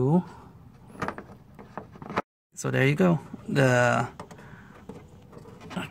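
Plastic connectors click and snap as fingers work them loose.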